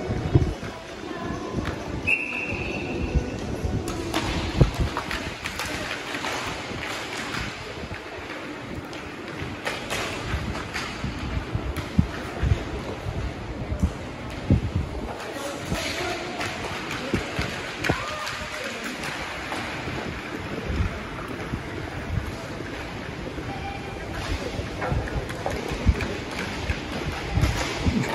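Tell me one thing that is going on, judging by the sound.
Hockey sticks clack and knock against a ball in a large echoing hall.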